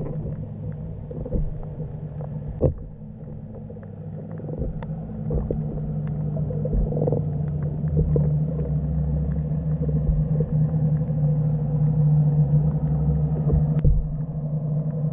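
Sea water surges and rumbles, muffled underwater.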